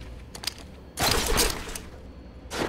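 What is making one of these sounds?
A grappling claw fires with a sharp whoosh.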